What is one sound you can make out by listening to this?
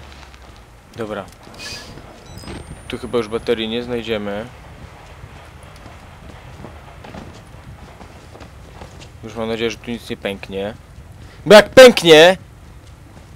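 A young man speaks into a headset microphone in short bursts, with animation.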